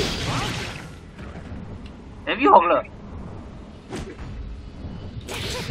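Sword strikes and magic blasts crash in a fast game fight.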